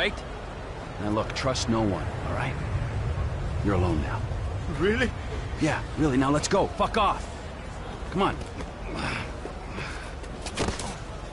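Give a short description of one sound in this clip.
A second man answers in a tense, agitated voice.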